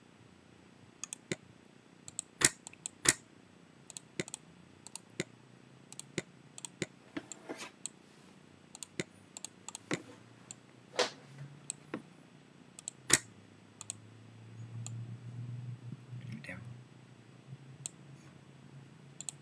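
A computer mouse clicks sharply again and again.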